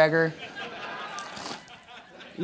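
A man crunches into a lettuce leaf.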